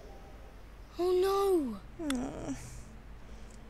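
A young boy exclaims in dismay.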